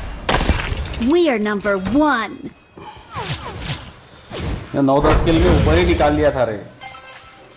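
A young man talks excitedly close to a microphone.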